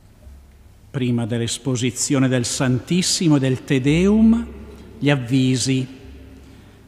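An elderly man chants through a microphone, echoing in a large hall.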